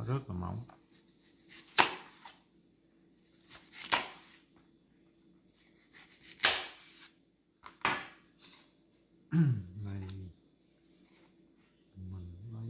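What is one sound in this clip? A knife slices through soft fruit.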